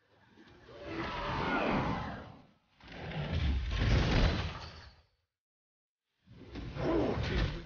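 Magic spells whoosh and burst during a fight.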